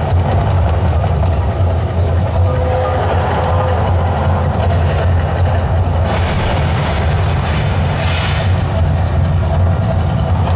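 Water jets gush and hiss with a steady roar.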